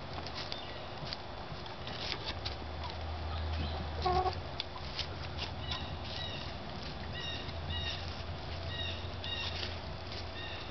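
Hens cluck softly close by.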